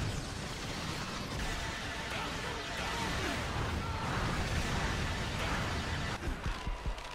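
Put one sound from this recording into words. Rapid laser gunfire blasts and crackles.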